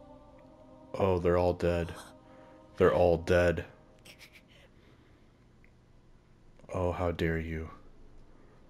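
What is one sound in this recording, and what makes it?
A young man cries out in anguish.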